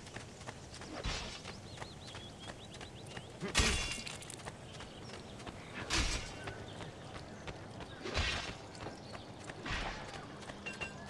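Heavy thuds sound as a runner lands from jumps.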